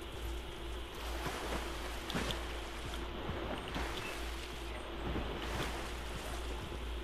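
A game character splashes through water.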